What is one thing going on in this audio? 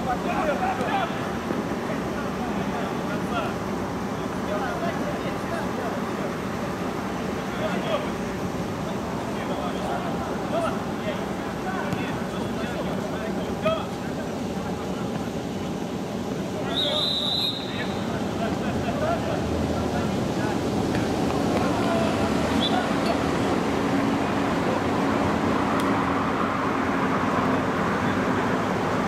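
Men shout and call out across an outdoor field.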